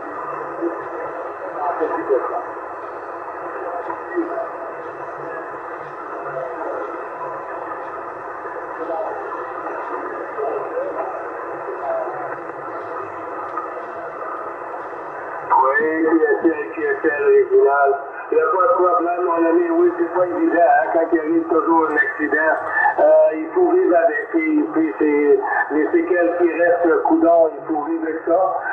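A radio receiver hisses and crackles with static through its loudspeaker.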